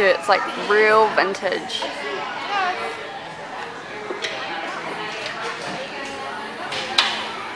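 Young children chatter and call out in the background.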